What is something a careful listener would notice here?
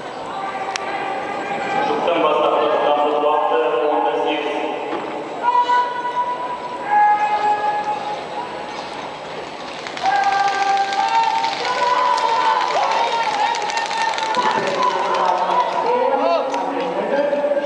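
Spectators cheer and shout in a large echoing hall.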